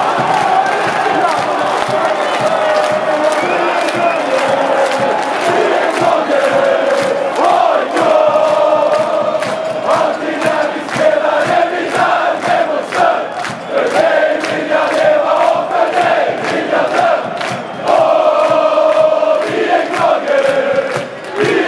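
Fans clap their hands in rhythm.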